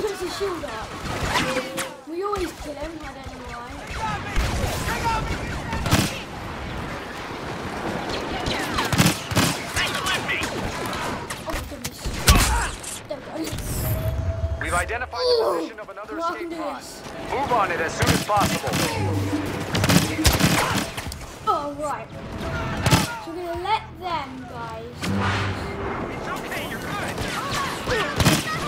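Blaster guns fire in rapid sharp bursts.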